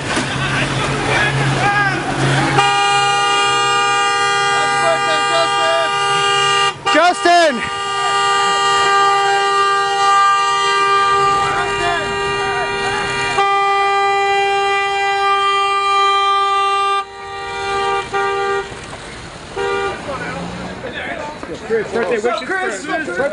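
A crowd of men shout and call out close by, outdoors.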